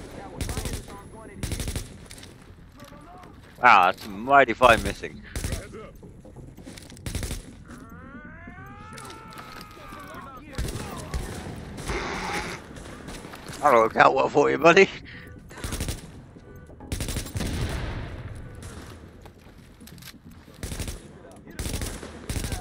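Rifle shots crack sharply, one at a time.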